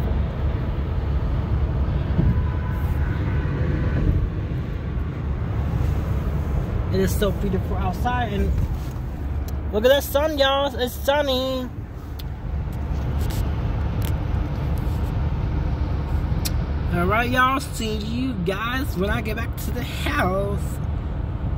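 A car's tyres rumble steadily on a highway, heard from inside the car.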